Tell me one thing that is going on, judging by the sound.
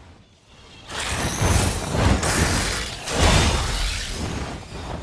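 A huge dragon roars.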